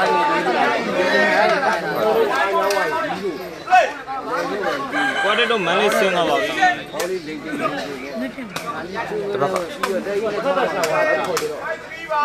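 A crowd of people chatters and calls out loudly outdoors.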